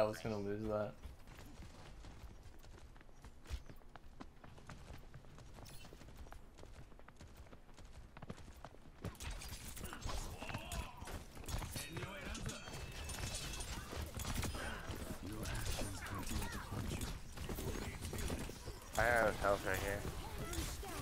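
A young man speaks with animation through a microphone.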